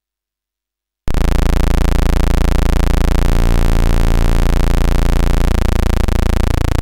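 A harsh electronic buzzing tone starts suddenly and drones loudly, sliding and stepping between pitches.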